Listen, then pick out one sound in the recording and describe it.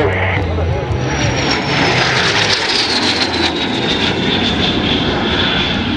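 A jet engine roars loudly overhead as a plane flies past, its whine gliding lower in pitch.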